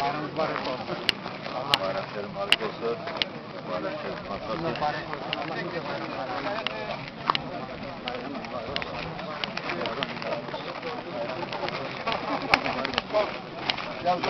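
A crowd of men talk and greet each other close by, outdoors.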